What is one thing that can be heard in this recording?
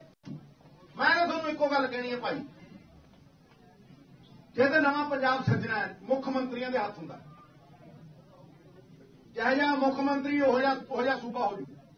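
A man speaks forcefully into a microphone, in bursts with pauses.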